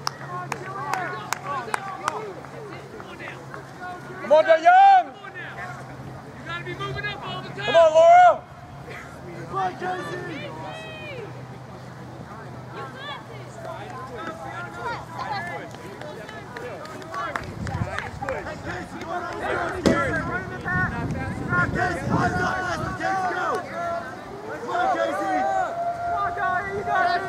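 Spectators cheer and shout encouragement outdoors.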